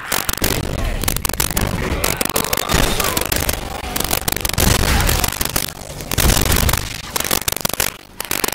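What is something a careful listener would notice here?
A heavy weapon fires in rapid, loud blasts.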